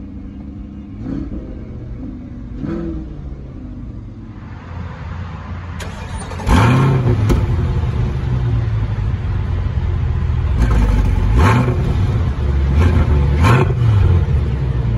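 A car engine revs sharply several times, roaring loudly.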